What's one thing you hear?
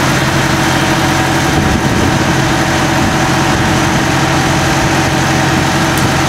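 A tractor loader's hydraulics whine as the bucket lifts.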